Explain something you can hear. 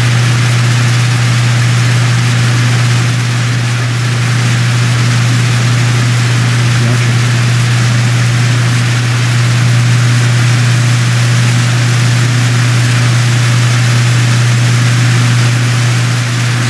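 Water sprays hard from fire hoses with a steady hiss.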